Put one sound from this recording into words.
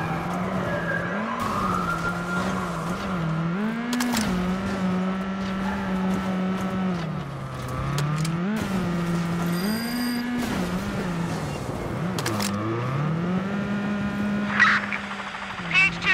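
A car engine hums and revs up and down as the car drives over rough ground.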